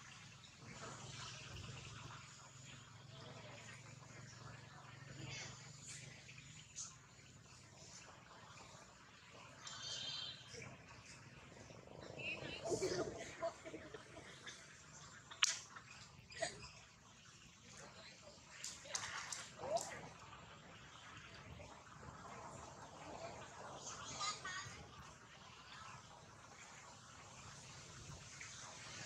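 Water splashes and laps softly as a monkey swims.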